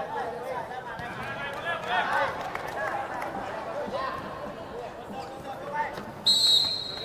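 A crowd chatters and calls out in a large echoing arena.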